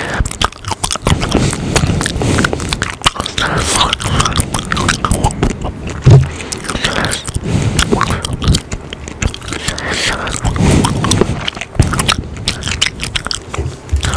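A young man whispers very close to a microphone.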